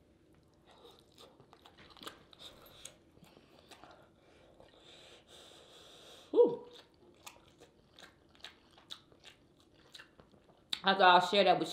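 Fingers squelch and click through food in a sauce.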